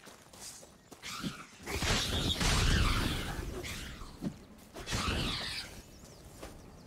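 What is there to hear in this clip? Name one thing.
A sword swishes through the air in quick swings.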